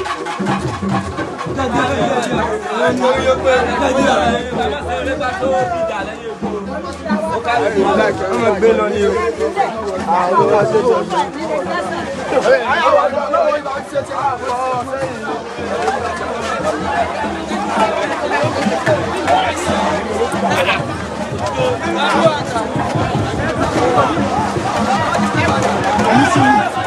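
A crowd of men and women talk and shout excitedly close by, outdoors.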